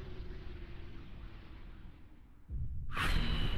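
A swirling portal roars with a rushing hiss.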